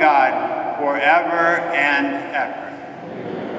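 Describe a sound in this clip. A man chants through a microphone in a large, echoing hall.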